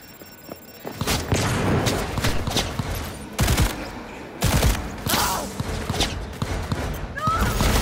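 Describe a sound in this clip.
A pistol fires rapid shots that echo loudly.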